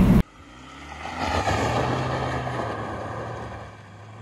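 A car pulls away with its engine revving.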